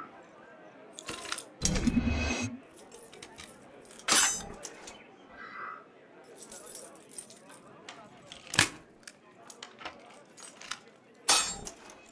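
Metal lock pins click and clank as a lock is picked.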